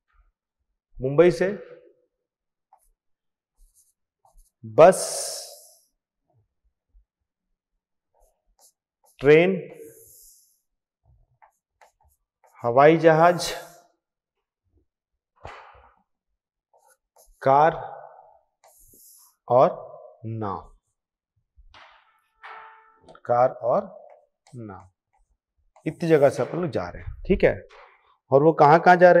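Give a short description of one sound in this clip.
A man speaks with animation in short bursts, close and clear.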